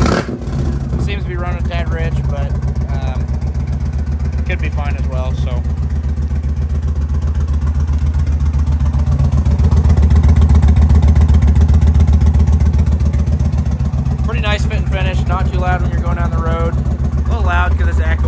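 A motorcycle engine idles with a steady, low, throbbing rumble close by.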